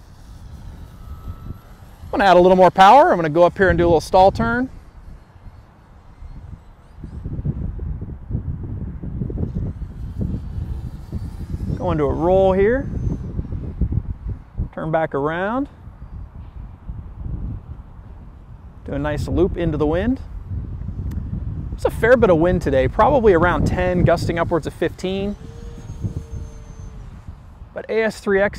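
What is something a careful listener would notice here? A model airplane's motor buzzes overhead as the plane passes.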